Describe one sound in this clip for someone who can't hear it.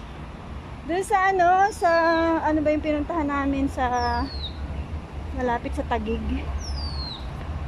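A middle-aged woman speaks close by with animation.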